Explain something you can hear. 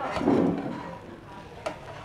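A metal spatula scrapes against a frying pan.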